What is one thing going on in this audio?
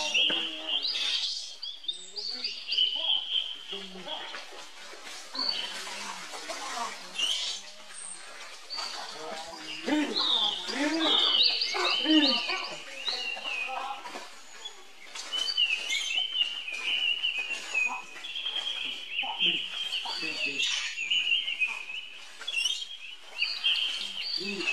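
A baby monkey screams and squeals shrilly.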